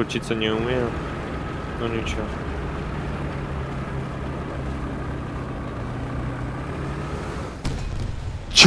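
A tank engine rumbles steadily as the tank drives.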